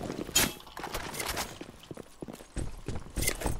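A gun is drawn with a sharp metallic click.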